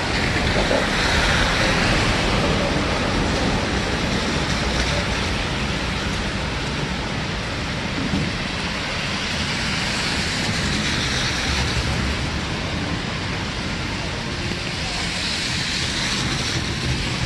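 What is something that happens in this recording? Footsteps splash on a wet pavement.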